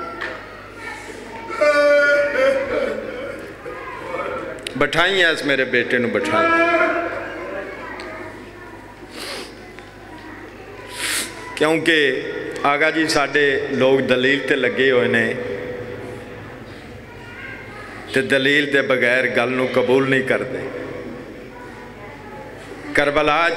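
A man recites in a loud, melodic chanting voice through a microphone, heard over loudspeakers in an echoing space.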